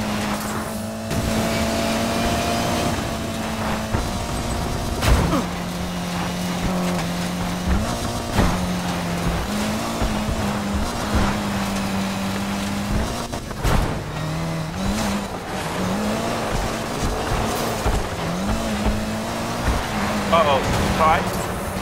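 Tyres rumble and skid over gravel.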